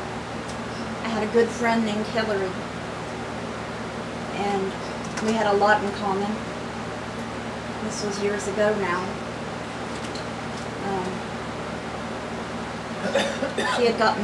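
A young woman speaks calmly and close up, in short bursts with pauses.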